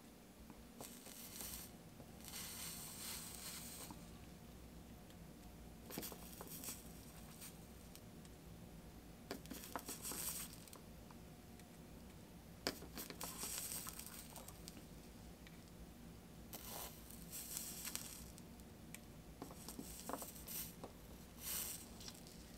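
Molten solder sizzles and hisses in short bursts as an iron touches it.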